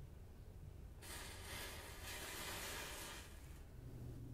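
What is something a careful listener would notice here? A match flame flares with a soft hiss.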